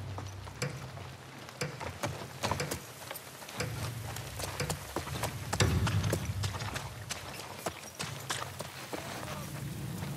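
Footsteps thud on wooden boards and soft ground.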